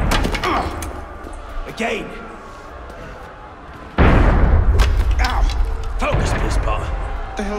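Fists thud in a scuffle.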